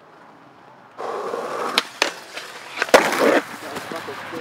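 Skateboard wheels roll on concrete.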